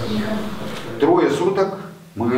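A man speaks calmly to listeners nearby.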